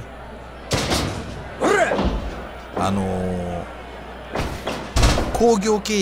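Heavy thuds of bodies hitting a wrestling mat.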